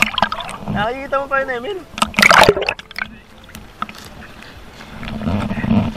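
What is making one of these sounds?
Water laps and splashes close by.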